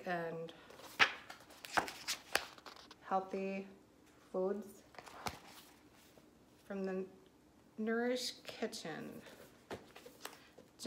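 Book pages rustle and turn.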